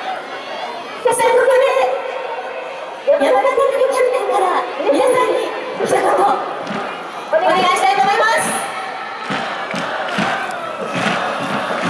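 A large crowd of fans cheers and shouts in loud bursts.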